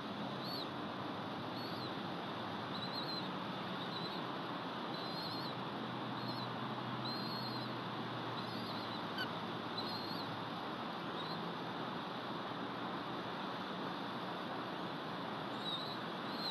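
An eagle gives short, high chirping calls again and again.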